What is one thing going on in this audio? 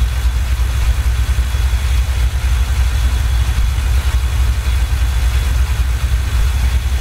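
A truck's diesel engine rumbles steadily while driving.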